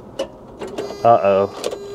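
A key clicks in a vehicle's ignition.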